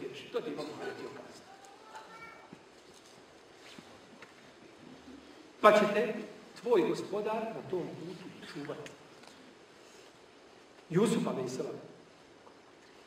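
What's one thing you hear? A middle-aged man speaks calmly into a microphone, in short bursts with pauses.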